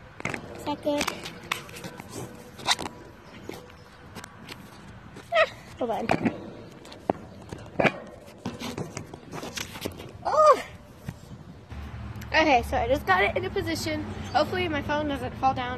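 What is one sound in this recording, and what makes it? A young girl talks close by with animation.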